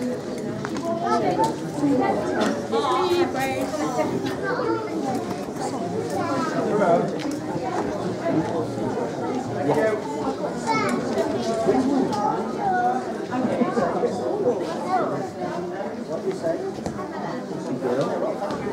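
Many men and women chat in a hall.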